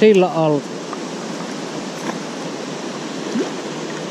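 A fish splashes into the water.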